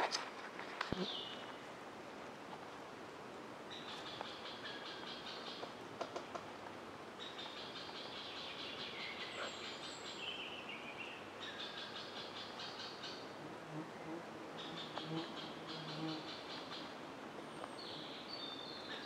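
A campfire crackles.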